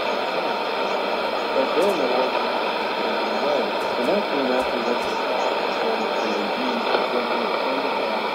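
A faint, distorted voice comes through a radio loudspeaker amid the static.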